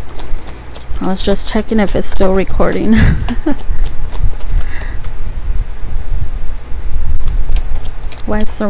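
Playing cards riffle and slap softly as they are shuffled.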